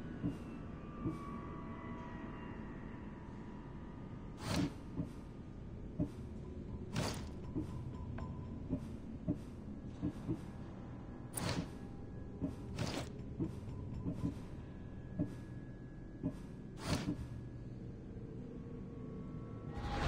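Soft menu clicks and whooshes sound as selections change.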